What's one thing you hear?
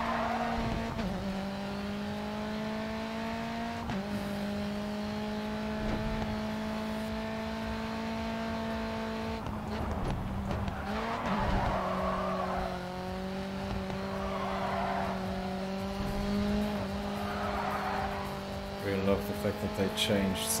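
A racing car engine roars at high revs and shifts up through the gears.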